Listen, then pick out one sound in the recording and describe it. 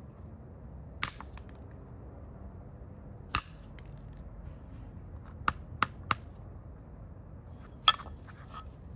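Stone flakes snap off with sharp, scattered clicks.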